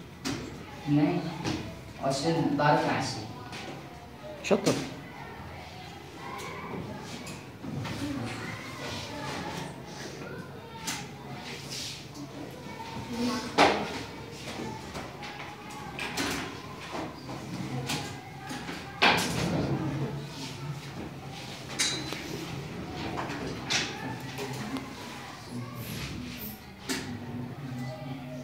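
A boy speaks calmly, explaining as he goes.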